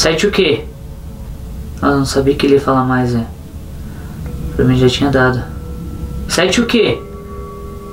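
A young man speaks slowly and quietly nearby, in short bursts.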